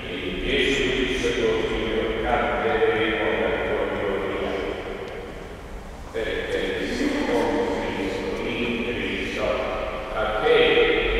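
A man chants slowly through a loudspeaker in a large echoing hall.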